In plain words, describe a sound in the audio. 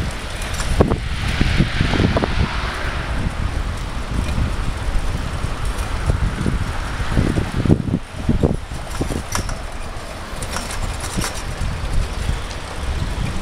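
Wind rumbles and buffets loudly outdoors.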